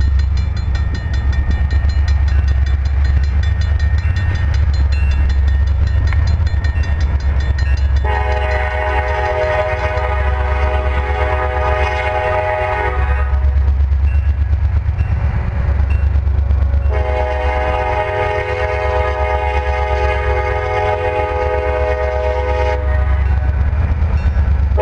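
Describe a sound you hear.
A train rumbles steadily as it approaches.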